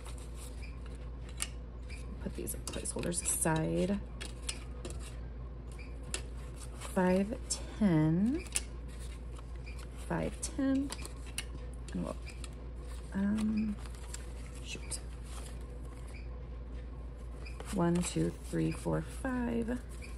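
Paper banknotes rustle and crinkle as hands count and sort them.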